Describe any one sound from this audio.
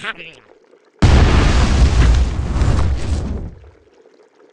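A small rocket roars loudly, then fades away.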